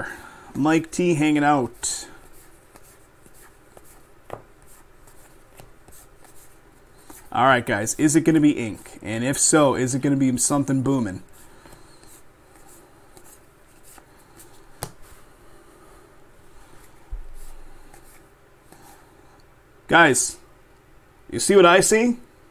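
Cards flick and slide softly against each other as they are shuffled by hand.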